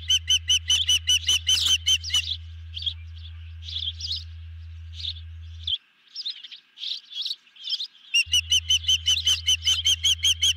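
An osprey calls with rapid, shrill, whistling chirps that pause and then start again.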